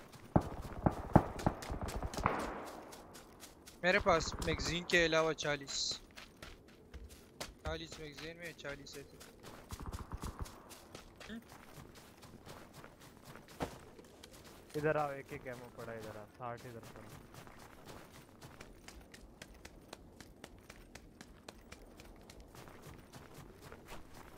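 Footsteps crunch quickly over snow and dry ground.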